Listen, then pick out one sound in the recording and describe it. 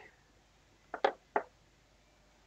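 Small plastic parts click softly as they are picked up and handled.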